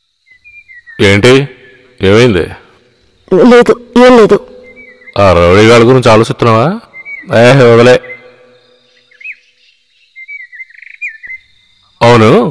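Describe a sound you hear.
A man speaks in a low, tense voice, close by.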